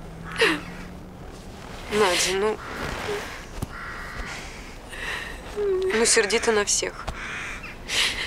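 A young woman speaks softly and emotionally, close by.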